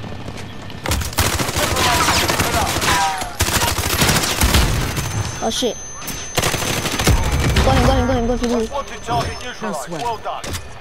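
Rapid gunshots fire in bursts, echoing off walls.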